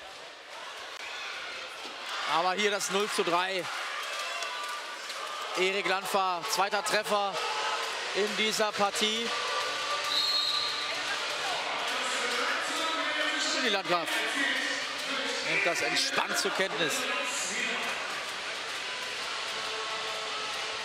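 A large crowd murmurs and cheers in an echoing indoor hall.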